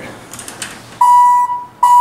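An elevator chime sounds a steady tone.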